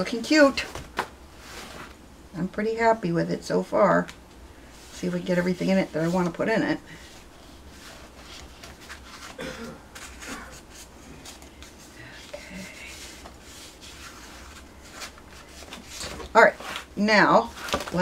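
Paper rustles and slides across a table.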